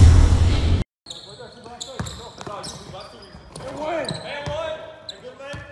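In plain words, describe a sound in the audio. Sneakers squeak on a hardwood court in an echoing gym.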